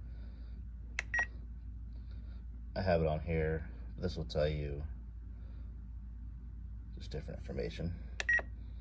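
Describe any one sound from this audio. A handheld remote controller gives short high beeps as its buttons are pressed.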